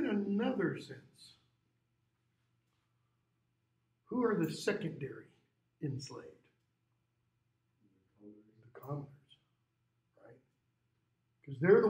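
A middle-aged man speaks in bursts with pauses, explaining calmly through a face mask.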